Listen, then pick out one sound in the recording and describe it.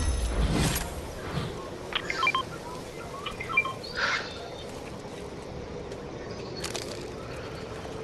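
Game pickup chimes ring out as items are collected.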